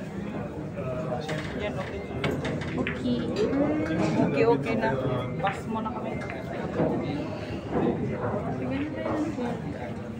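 Billiard balls click together as a cue strikes.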